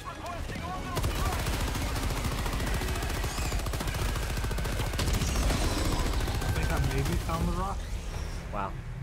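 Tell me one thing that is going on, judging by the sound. Rapid gunfire rattles nearby.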